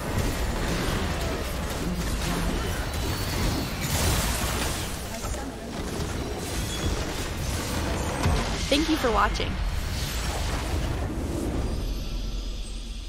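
Game spell blasts and impacts crash and boom in quick succession.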